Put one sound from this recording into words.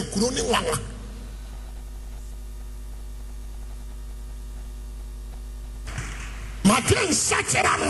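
A man preaches forcefully into a microphone in a large echoing hall.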